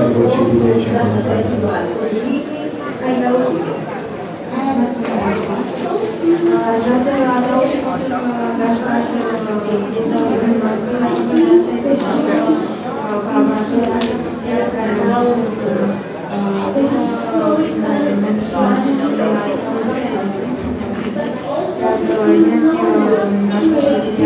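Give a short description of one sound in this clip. A man talks in reply.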